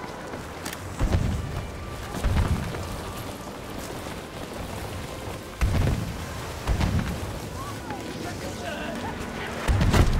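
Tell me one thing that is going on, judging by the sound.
A rifle fires with deep, booming shots.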